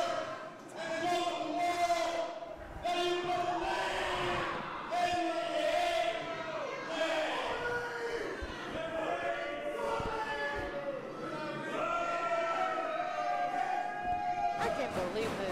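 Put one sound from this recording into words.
A man speaks loudly and with animation through a microphone and loudspeakers in an echoing hall.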